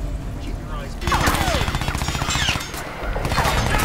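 A rifle fires several sharp shots.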